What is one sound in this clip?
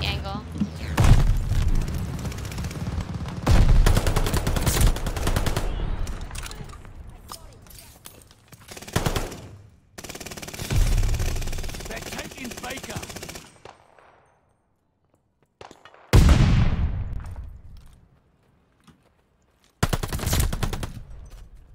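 Explosions boom loudly and echo away.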